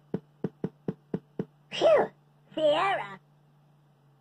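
Short electronic tones and a jingle play through small computer speakers.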